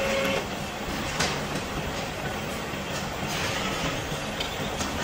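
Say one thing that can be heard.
A drill bores into a steel bar with a steady grinding whine.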